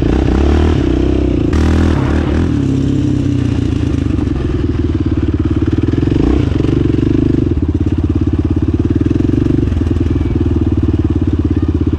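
A quad bike engine roars loudly and revs up and down close by.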